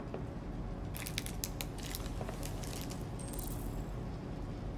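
A candy bar wrapper crinkles in a hand.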